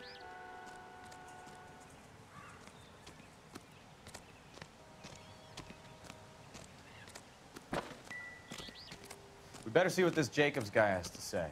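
Footsteps crunch softly on dry ground.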